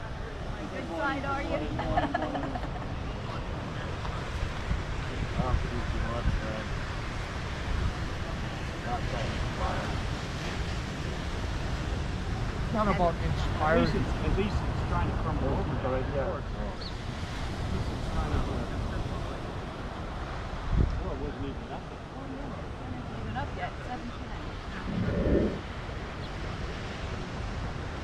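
Waves wash steadily onto a beach outdoors.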